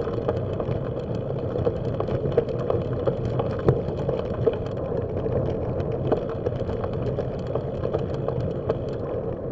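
Tyres roll and crunch over a gravel track.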